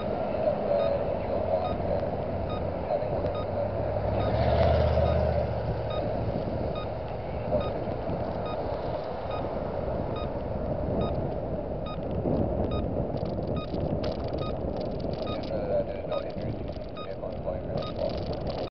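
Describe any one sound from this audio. A car drives along a road.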